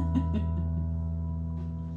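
A hand drum is struck a few times, then stops.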